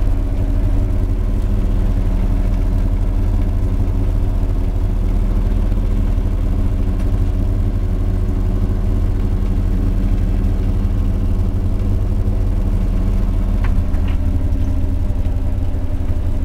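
The inboard diesel engine of a fishing boat chugs.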